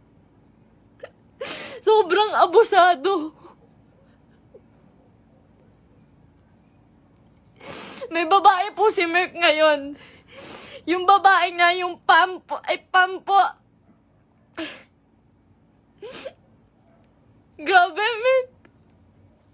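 A young woman sobs and speaks tearfully, close to a phone microphone.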